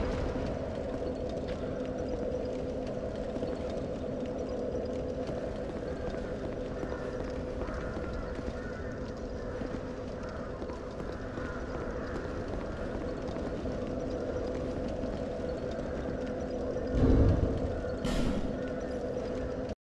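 A fire crackles softly nearby.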